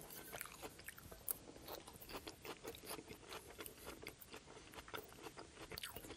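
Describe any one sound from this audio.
A man chews food wetly and close by.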